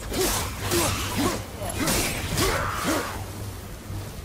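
Flaming chained blades whoosh through the air.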